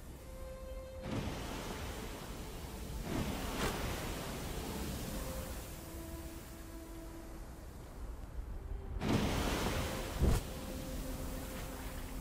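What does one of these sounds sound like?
Waterfalls roar steadily.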